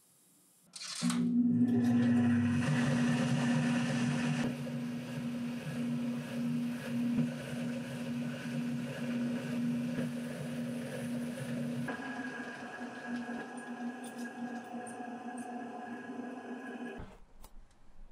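A small motor whirs steadily as a wheel spins.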